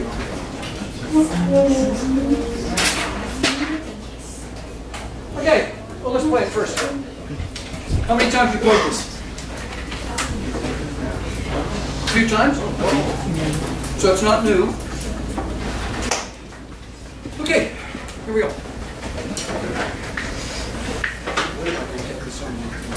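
A man speaks with animation to a group in a room with some echo.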